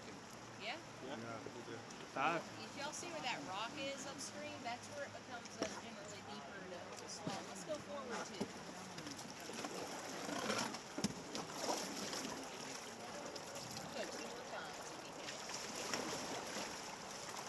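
Paddles splash in the water.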